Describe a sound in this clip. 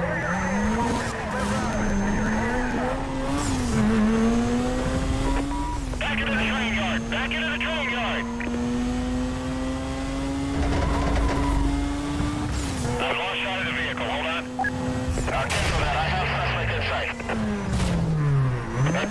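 A racing car engine roars and revs up and down through gear changes.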